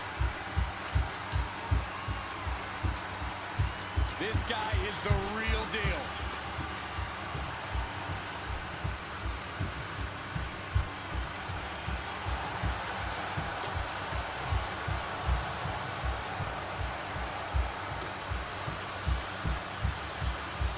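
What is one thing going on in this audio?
A large crowd cheers in a big echoing arena.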